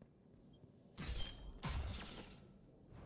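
A heavy blow strikes with a crackling electric burst.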